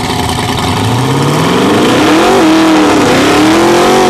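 A supercharged twin-turbo V8 drag car engine revs hard during a burnout.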